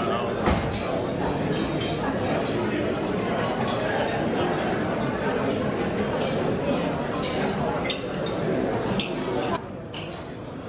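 A crowd chatters loudly in a large room.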